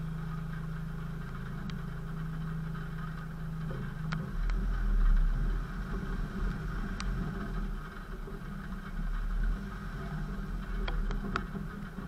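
A vehicle engine rumbles and revs as it drives along a dirt track.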